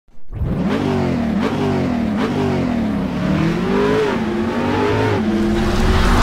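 A car engine revs hard, rising in pitch and dropping with each gear change.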